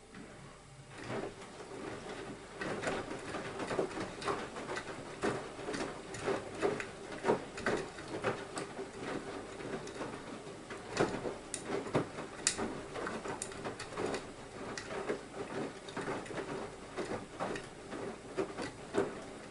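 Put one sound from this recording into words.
Items clatter and knock against a washing machine drum.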